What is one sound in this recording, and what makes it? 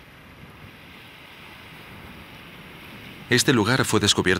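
Small waves lap gently against a rocky shore.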